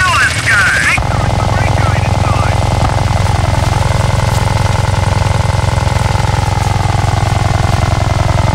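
A small helicopter's rotor whirs steadily overhead.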